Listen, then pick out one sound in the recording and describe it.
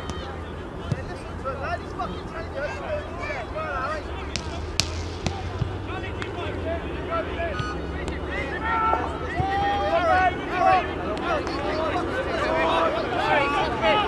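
Young players shout and call to each other across an open field.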